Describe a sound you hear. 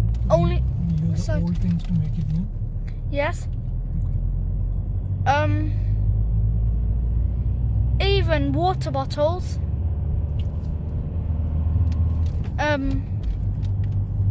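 A car's engine rumbles low and steadily inside the car.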